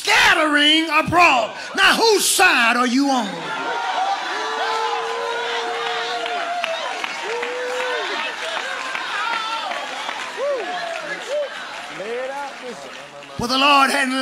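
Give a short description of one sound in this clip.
A man preaches loudly and excitedly through a microphone in a large echoing hall.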